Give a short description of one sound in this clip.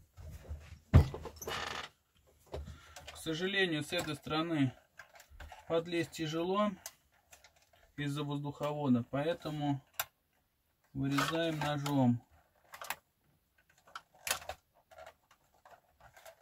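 A screwdriver clicks and scrapes against plastic parts.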